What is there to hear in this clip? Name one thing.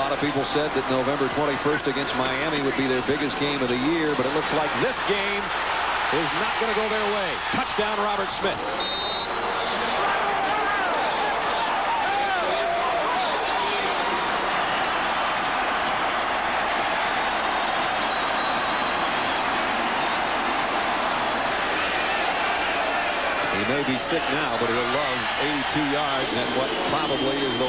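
A man commentates with excitement over a broadcast microphone.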